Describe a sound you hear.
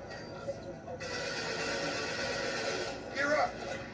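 A video game energy weapon fires with a crackling hiss.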